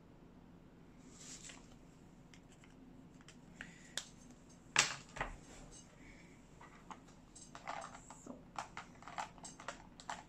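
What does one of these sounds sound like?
A card slides and taps on a tabletop.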